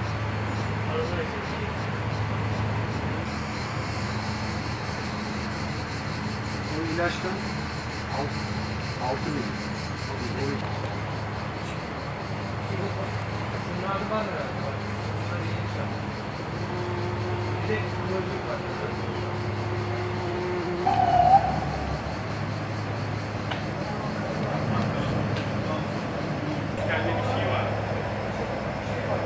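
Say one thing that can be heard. A bumblebee buzzes close by.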